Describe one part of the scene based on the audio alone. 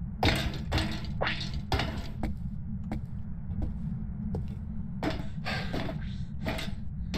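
Footsteps thud steadily on stairs.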